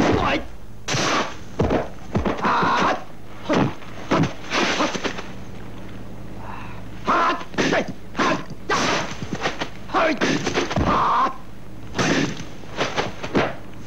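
A young man lets out sharp fighting shouts.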